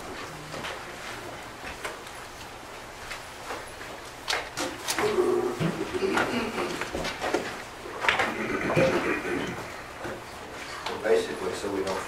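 Papers rustle.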